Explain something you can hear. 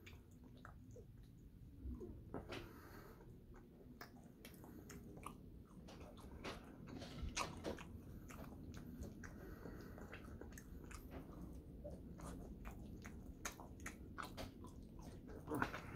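A young man chews food noisily close by.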